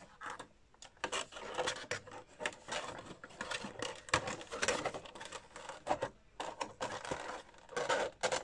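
A cardboard box rustles and scrapes in hands.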